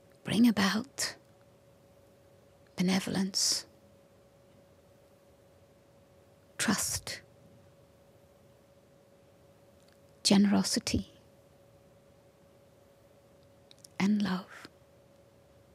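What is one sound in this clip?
An elderly woman speaks slowly and calmly into a microphone, with long pauses.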